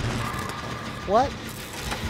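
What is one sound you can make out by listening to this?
A generator engine clanks and rattles.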